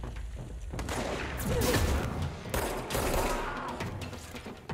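A loud blast booms and rumbles.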